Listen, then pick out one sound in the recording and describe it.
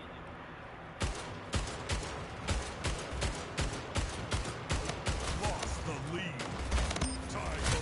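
Rapid gunshots crack in a video game.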